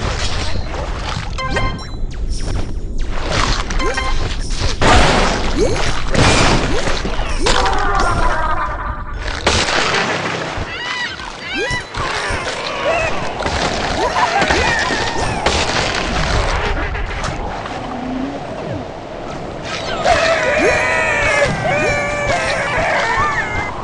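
A large sea creature chomps and crunches on prey.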